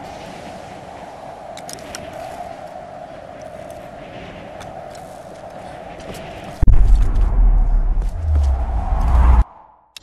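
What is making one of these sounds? Footsteps scuff slowly on a hard floor.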